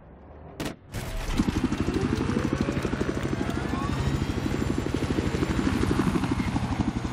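A helicopter's rotor thumps loudly and steadily.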